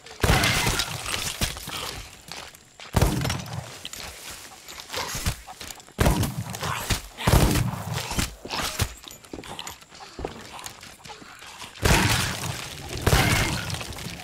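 Bones clatter and rattle as a skeleton shatters.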